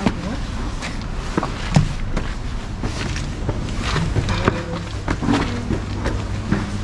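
Footsteps thud on stairs.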